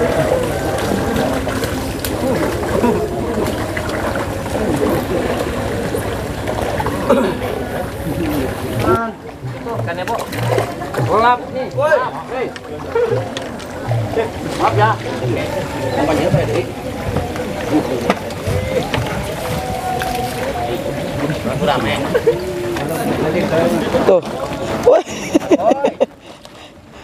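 Several men chat and call out outdoors.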